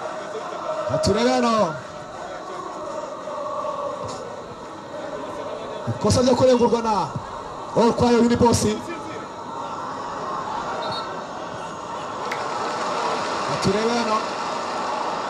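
A young man shouts sharply in short bursts.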